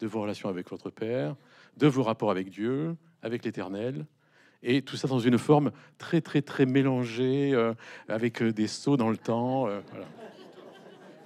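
An older man speaks calmly into a microphone in a reverberant hall.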